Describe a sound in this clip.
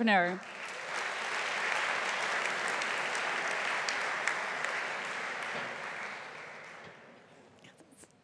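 An audience applauds in a large hall and the applause fades.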